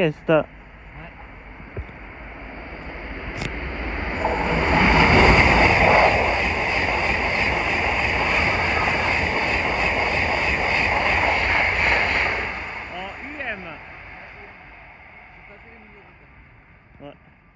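A high-speed train approaches and roars past at speed, then fades into the distance.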